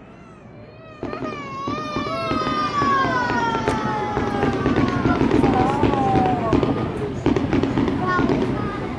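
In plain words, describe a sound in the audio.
Fireworks crackle and pop in the sky.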